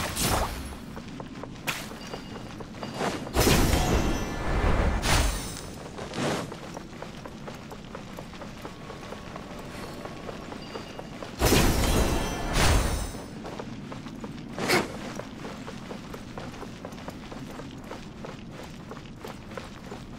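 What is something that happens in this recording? Light footsteps patter on stone.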